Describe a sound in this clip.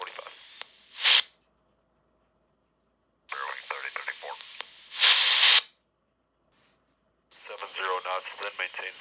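Muffled voice chatter plays in short bursts from a handheld radio's small loudspeaker.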